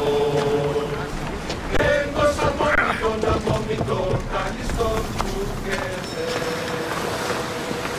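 Waves wash against rocks.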